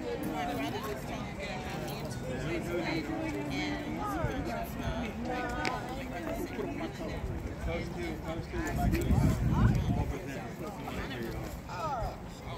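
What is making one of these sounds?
A group of men and women chat casually nearby outdoors.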